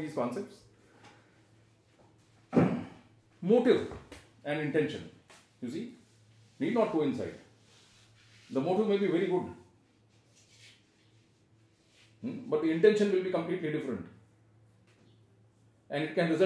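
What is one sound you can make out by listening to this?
An older man speaks calmly, in bursts with pauses, close by.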